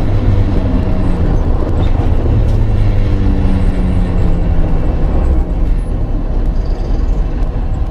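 Wind and tyres roar on a car at speed.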